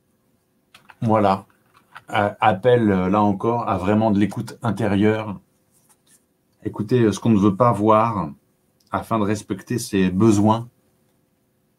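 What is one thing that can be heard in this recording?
A man speaks calmly and close to a microphone, reading out slowly.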